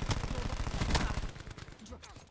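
A rifle fires a rapid burst of loud gunshots.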